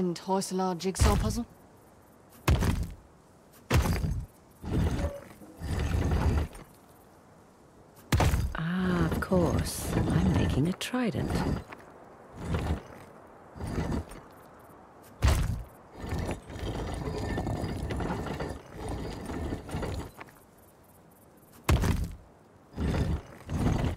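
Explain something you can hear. A heavy stone dial grinds and clunks as it turns.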